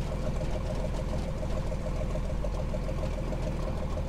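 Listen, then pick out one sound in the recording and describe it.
Tank tracks rattle and clank as a tank rolls forward.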